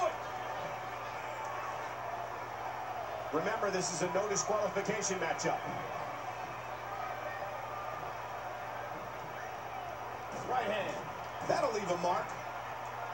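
A crowd cheers steadily through a television loudspeaker.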